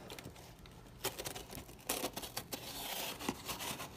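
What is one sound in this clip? Cardboard rustles and crinkles under a hand.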